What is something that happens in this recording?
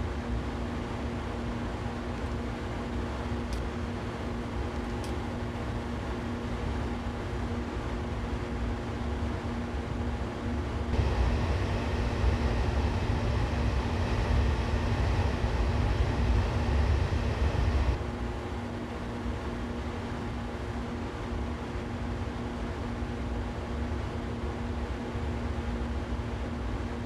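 Train wheels rumble over the rails, growing louder for a while on a bridge.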